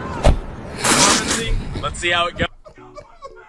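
A man exhales a long breath close to a microphone.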